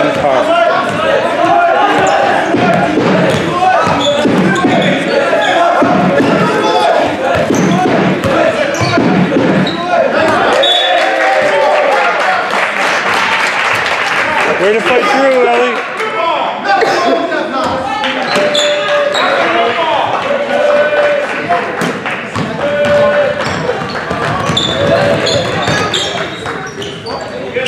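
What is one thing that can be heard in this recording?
A crowd of spectators chatters and cheers throughout in an echoing gym.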